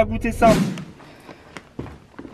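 A paper bag crinkles.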